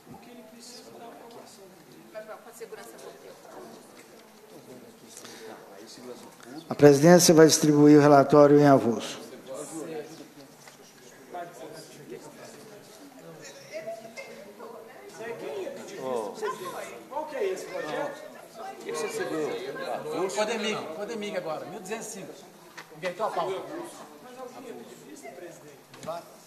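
Several men talk at once among themselves.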